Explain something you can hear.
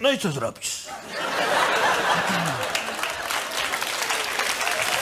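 A large audience laughs and applauds.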